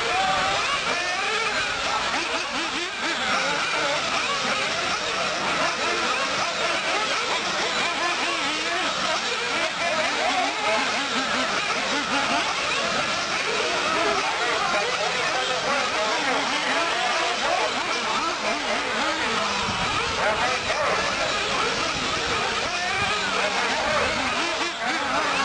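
Small racing cars whine loudly, their motors rising and falling in pitch as they speed around.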